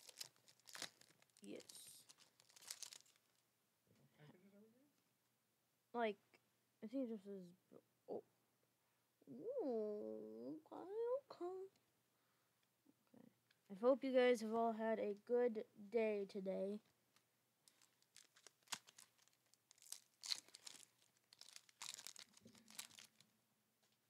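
A foil wrapper crinkles and tears in someone's hands.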